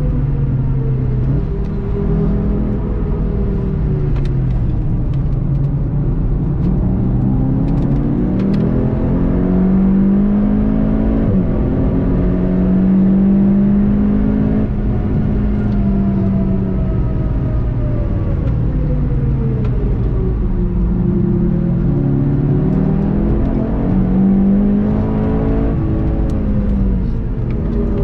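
A car engine revs hard, rising and falling as it shifts gears.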